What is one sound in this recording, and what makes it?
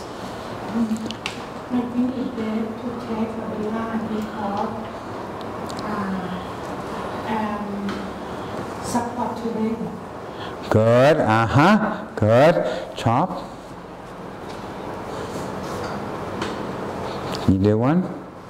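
An elderly man speaks calmly and clearly, close by.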